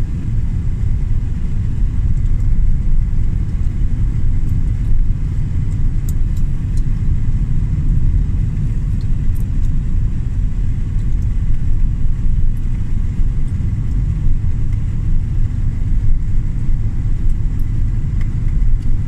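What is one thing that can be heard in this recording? Tyres roll over asphalt with a low steady rumble.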